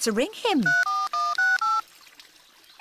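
A mobile phone beeps as its keys are pressed.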